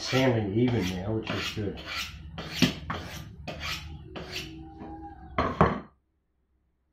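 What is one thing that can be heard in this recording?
A knife blade scrapes rapidly along a sharpening steel with rhythmic metallic swipes.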